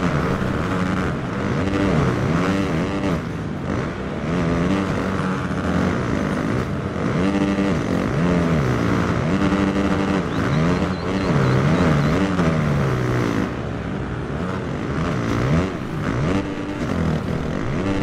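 A motorcycle engine revs hard, rising and falling in pitch as it shifts gears.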